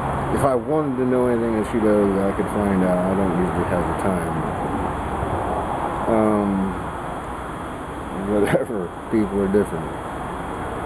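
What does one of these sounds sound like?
A man speaks casually and close by, with pauses.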